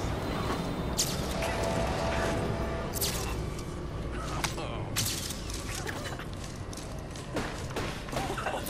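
Sharp sound effects crack and whoosh in bursts.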